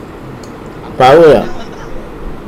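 A middle-aged man speaks briefly and loudly into a close microphone.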